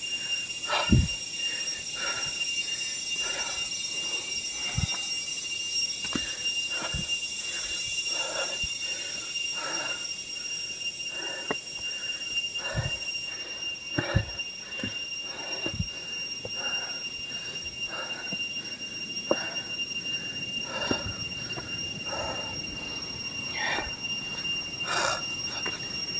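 Footsteps climb steadily over stone steps and rock.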